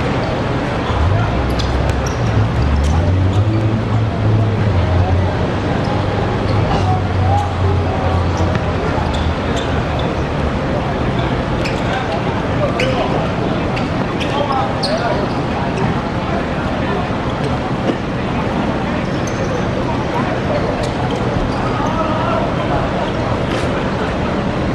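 Men shout and call out across an outdoor court.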